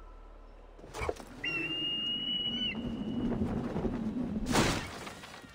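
Wind rushes loudly past a falling body.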